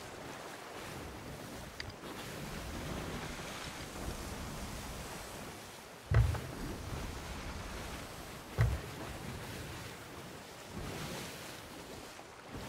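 Wind blows steadily through the sails.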